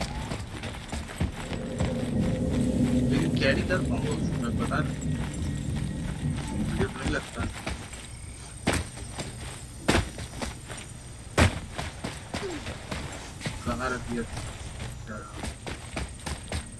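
Heavy footsteps thud quickly on stone.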